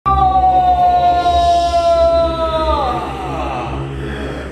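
A young man holds a long, loud sung note that slides downward at the end.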